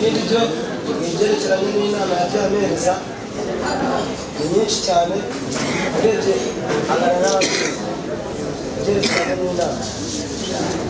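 A young man speaks into a microphone with animation, heard through loudspeakers in a large echoing room.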